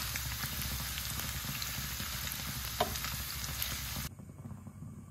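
Hot oil sizzles and crackles steadily in a pan.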